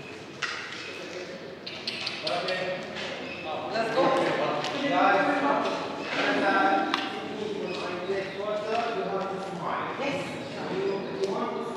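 Footsteps shuffle on a stone floor.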